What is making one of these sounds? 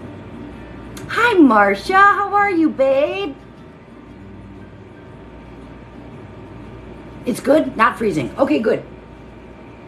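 A middle-aged woman talks close by with animation.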